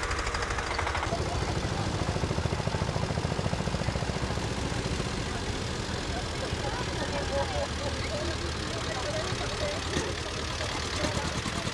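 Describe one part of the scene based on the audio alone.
An old tractor engine chugs with a steady rapid putter as it drives past close by.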